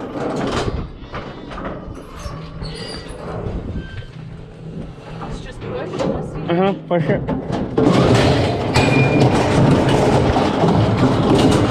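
Metal gate bars rattle and clank.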